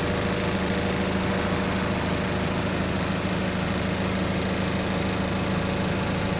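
A large truck engine idles with a steady, low rumbling hum close by.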